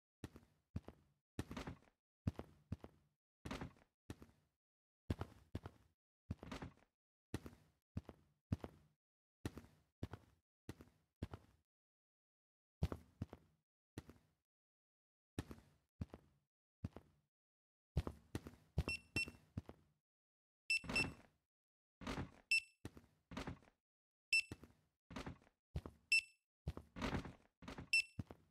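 Hard objects thud and clatter onto pavement, over and over.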